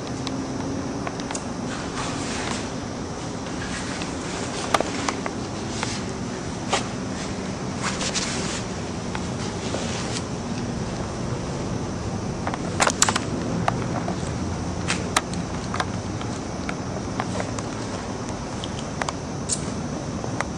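Scissors snip through hair in short, quick cuts.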